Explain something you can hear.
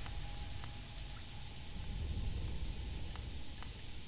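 Light footsteps tap softly on stone.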